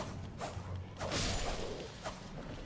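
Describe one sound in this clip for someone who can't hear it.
A sword swishes through the air.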